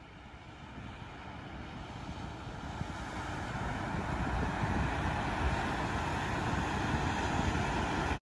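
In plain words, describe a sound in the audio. Waves wash softly onto a shore in the distance.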